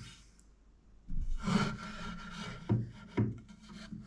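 A wooden board knocks down onto a wooden bench.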